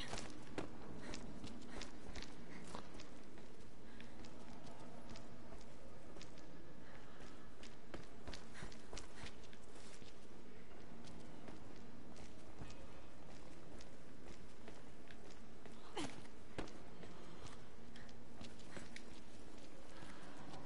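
Footsteps walk slowly on a hard floor.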